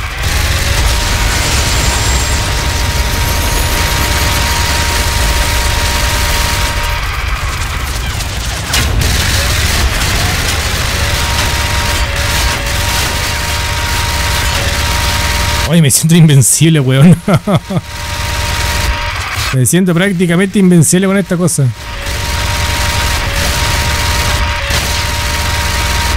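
A heavy machine gun fires in rapid, continuous bursts.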